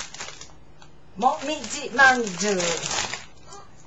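Plastic wrapping rustles and crinkles.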